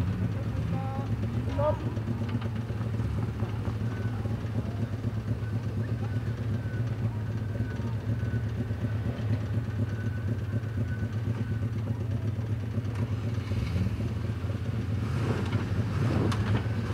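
An off-road engine rumbles steadily, straining at low revs.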